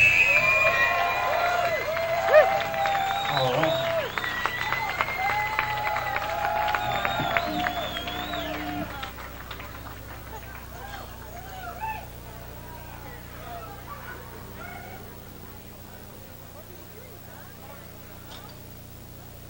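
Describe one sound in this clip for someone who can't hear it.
A band plays live music on a stage, loud at first and then quieter.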